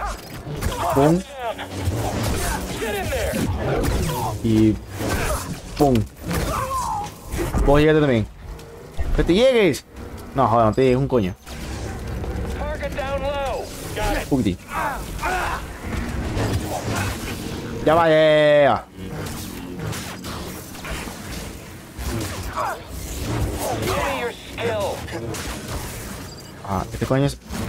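Lightsabers hum and clash with sharp impacts.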